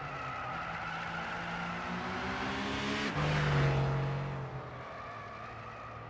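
Tyres squeal through a tight corner.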